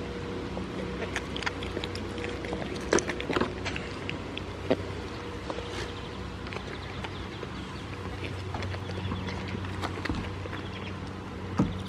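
A goat bites and chews a juicy tomato with wet crunching sounds.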